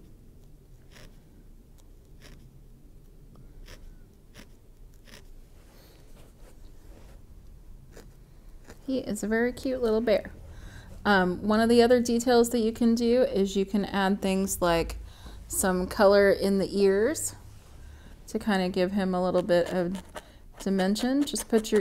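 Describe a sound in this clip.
A felting needle pokes softly and repeatedly into wool.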